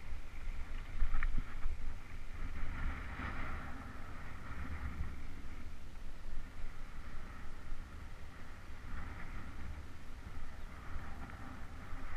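Bicycle tyres roll over a dirt path.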